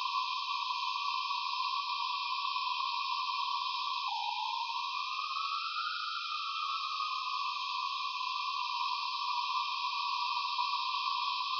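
An electronic tone hums steadily, dropping and then slowly rising and settling in pitch midway.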